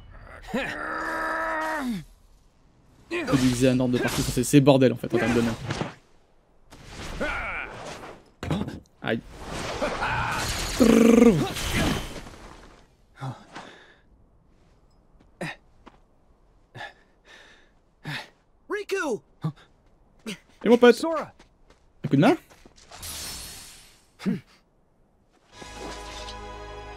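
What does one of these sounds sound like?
A man talks into a headset microphone.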